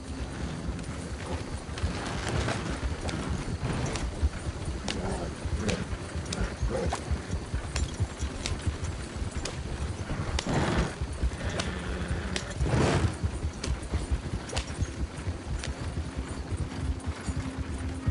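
Wooden wagon wheels rattle and creak over the ground.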